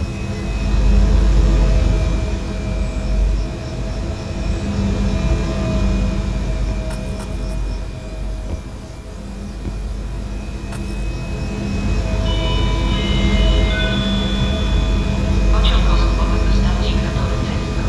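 A stationary train hums steadily nearby.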